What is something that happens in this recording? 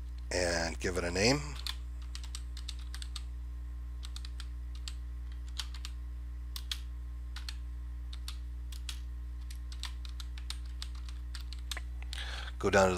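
Keys on a keyboard click softly as someone types.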